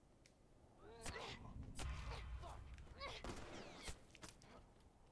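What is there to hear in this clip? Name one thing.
A man grunts during a struggle.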